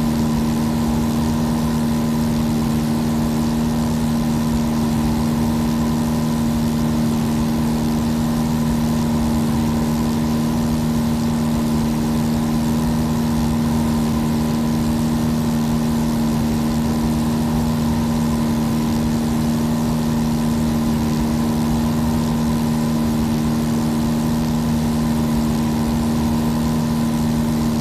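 A small plane's propeller engine drones steadily.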